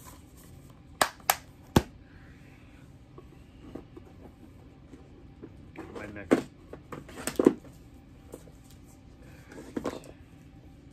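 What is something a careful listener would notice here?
Plastic clicks and knocks as objects are handled.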